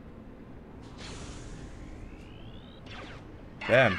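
A laser gun fires a single zapping shot.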